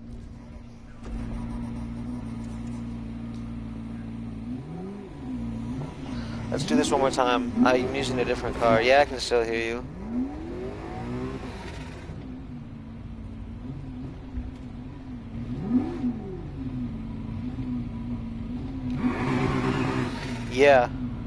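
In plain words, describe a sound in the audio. A sports car engine roars and revs at speed.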